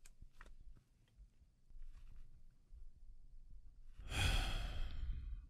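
A young man speaks softly and teasingly in a deep voice, close to a microphone.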